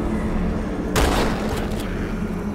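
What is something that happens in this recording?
A weapon fires a loud crackling energy blast.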